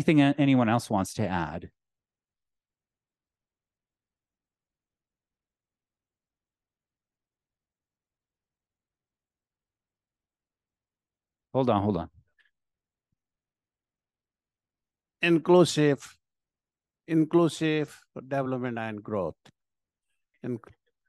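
A man speaks calmly in short bursts through an online call, with silent gaps between.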